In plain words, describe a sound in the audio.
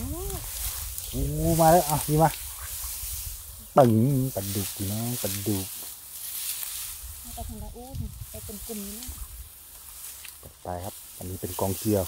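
Dry grass rustles and crackles as hands push through it.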